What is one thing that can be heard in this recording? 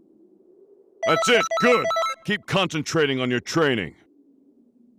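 A video game results jingle plays.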